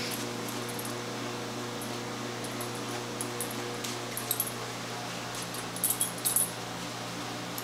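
A dog chews and mouths a toy.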